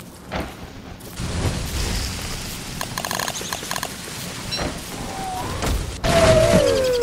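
Fire crackles and roars.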